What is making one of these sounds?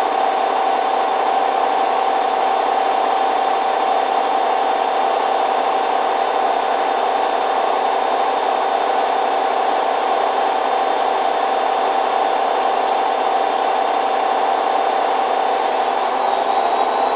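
A washing machine hums steadily.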